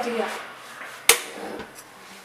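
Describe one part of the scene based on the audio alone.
A young boy claps his hands once.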